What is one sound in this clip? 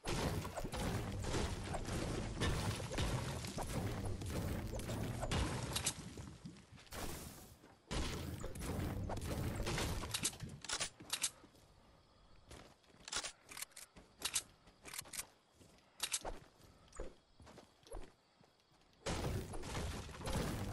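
A pickaxe strikes wood and stone with sharp, repeated thuds.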